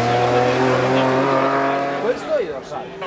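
A rally car engine drones as it drives away up a hill.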